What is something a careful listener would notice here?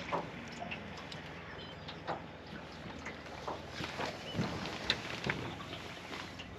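Water splashes and laps against a boat's hull.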